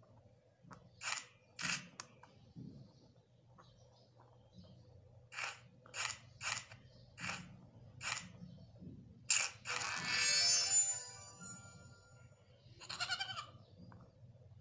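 Sound effects from a phone game play in short, sharp bursts.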